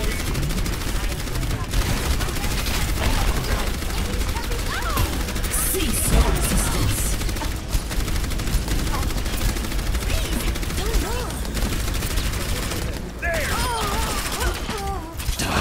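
A futuristic energy gun fires a steady crackling beam.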